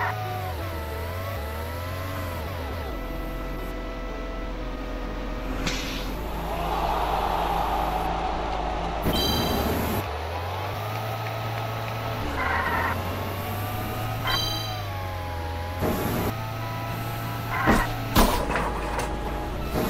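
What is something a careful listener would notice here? A small kart engine hums and whines as it drives.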